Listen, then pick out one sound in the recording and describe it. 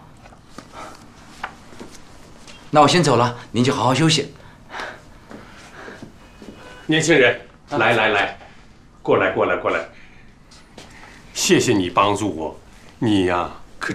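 An elderly man speaks calmly.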